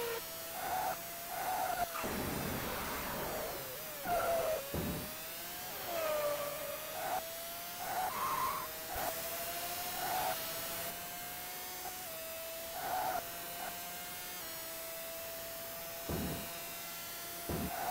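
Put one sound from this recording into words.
A racing car engine whines steadily, its pitch rising and falling with the speed.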